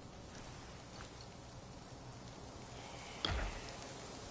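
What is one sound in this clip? A menu clicks sharply.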